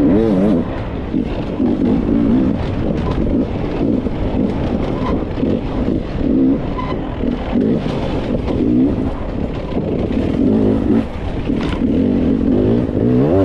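Tyres crunch over loose gravel and dirt.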